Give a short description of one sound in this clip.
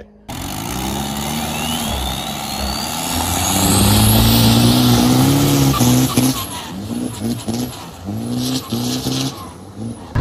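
A boat engine roars loudly as a speedboat races past.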